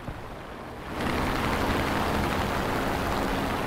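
Propeller aircraft engines drone loudly and steadily.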